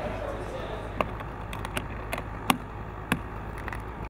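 Metal latches on a case click shut.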